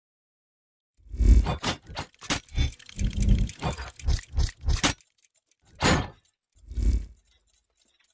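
Metal gears clank and knock in quick bursts.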